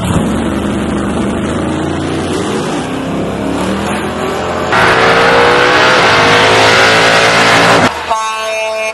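A pickup truck engine roars as it launches down the track.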